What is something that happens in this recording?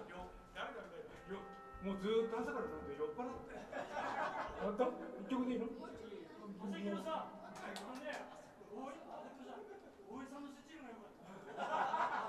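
A man talks into a microphone through loudspeakers.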